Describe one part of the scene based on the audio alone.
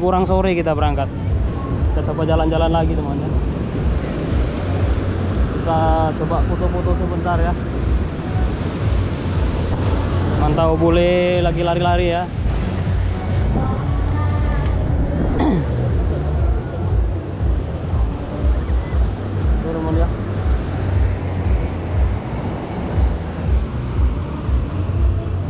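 Waves break and wash onto the shore.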